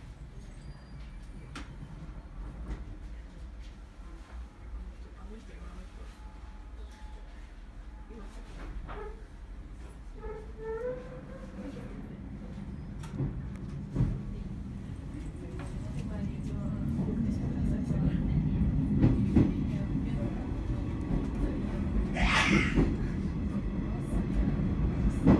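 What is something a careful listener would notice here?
A train rumbles along the tracks, growing louder as it gathers speed.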